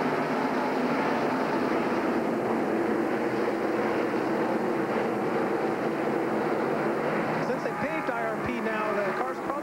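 Many race car engines roar loudly as cars speed past.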